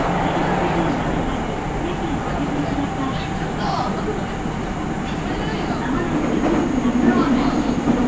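A stopped electric train hums steadily at the platform.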